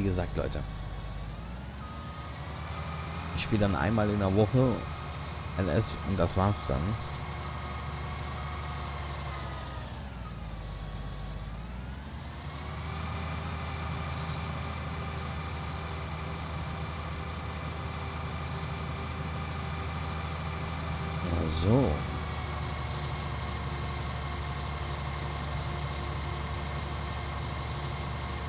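A combine harvester engine drones steadily, its pitch dipping and rising.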